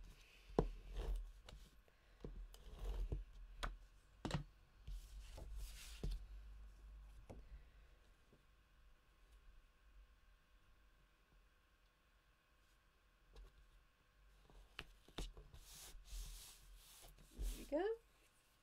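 Paper taps and knocks on a hard surface.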